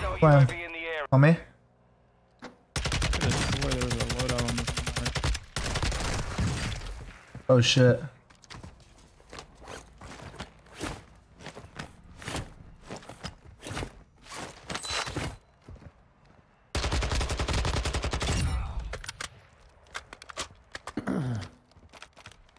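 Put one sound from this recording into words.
A young man speaks loudly into a close microphone.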